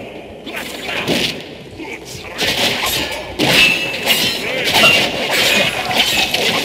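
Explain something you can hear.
Weapons clash and strike hard in quick bursts.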